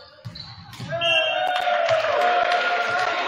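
A crowd cheers and yells loudly.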